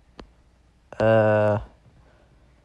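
A short bright electronic tone rings out.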